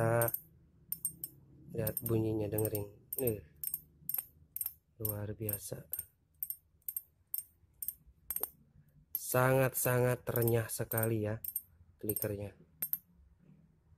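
A fishing reel clicks steadily as its spool is turned by hand.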